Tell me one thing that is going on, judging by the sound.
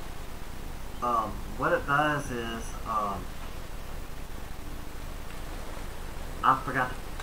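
A man speaks briefly into a headset microphone.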